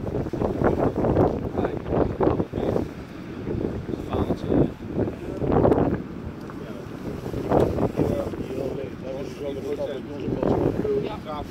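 Rough waves churn and splash.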